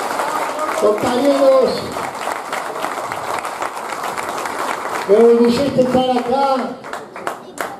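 A man shouts loudly over the crowd.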